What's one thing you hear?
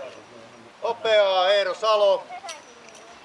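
A woman calls out loudly in a long, drawn-out voice outdoors.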